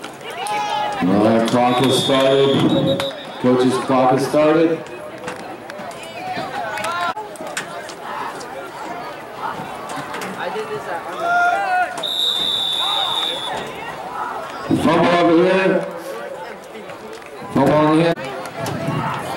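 Men shout loudly close by.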